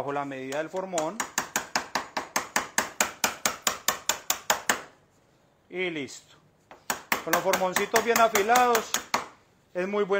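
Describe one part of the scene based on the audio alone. A chisel taps rapidly into wood.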